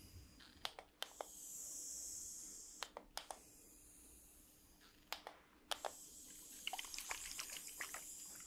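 Plastic bottles click and tap close by.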